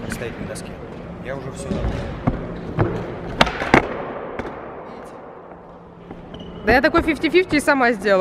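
Skateboard wheels roll and clack on a concrete floor.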